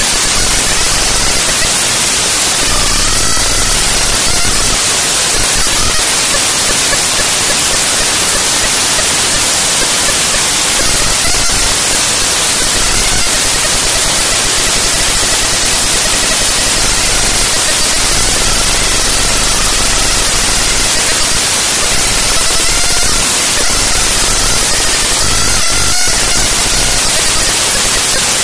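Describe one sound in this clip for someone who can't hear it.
A harsh, loud, hissing noise track plays steadily.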